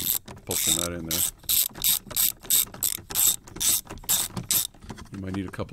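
A ratchet wrench clicks rapidly as a bolt is turned.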